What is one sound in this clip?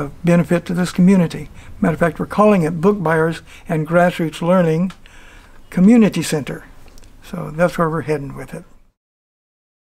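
An elderly man speaks calmly and warmly, close to a microphone.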